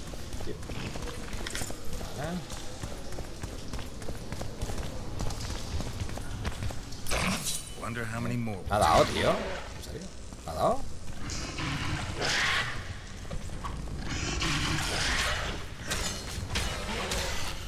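A man talks with animation, close to a microphone.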